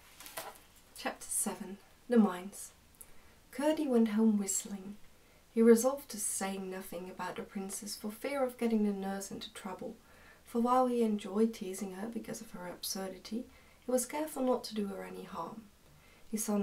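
A young woman reads aloud calmly, close by.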